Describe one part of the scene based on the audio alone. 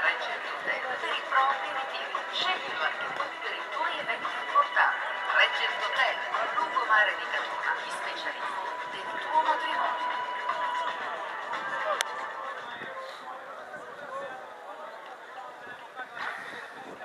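Young men call out and chatter across an open outdoor pitch.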